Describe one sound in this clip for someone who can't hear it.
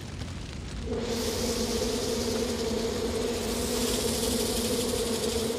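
Bees buzz steadily in their hives.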